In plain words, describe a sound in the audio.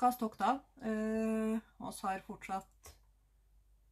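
A young woman speaks close by with animation, drawing out one long sung-like note.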